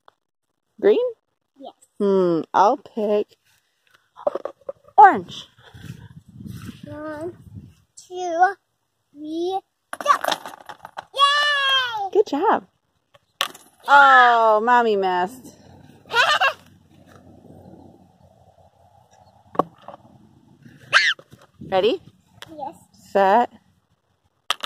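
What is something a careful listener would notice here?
A young girl talks and exclaims with animation close by.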